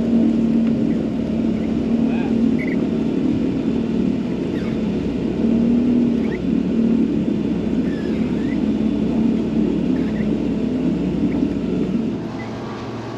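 Thick water plants scrape and rustle against a boat's hull.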